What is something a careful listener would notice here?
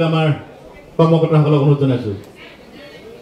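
A man speaks loudly through a microphone over a loudspeaker.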